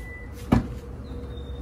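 A key fob button clicks.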